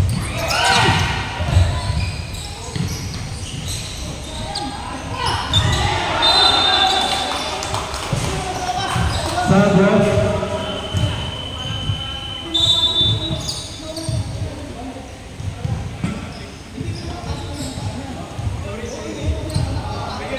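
Shoes squeak sharply on a hard court in a large echoing hall.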